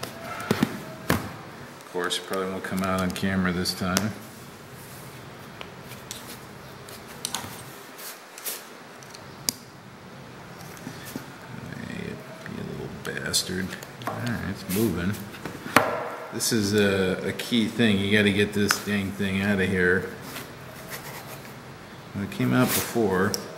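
Small metal parts click and clink as they are handled.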